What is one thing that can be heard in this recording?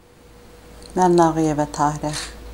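A middle-aged woman speaks calmly close to a microphone.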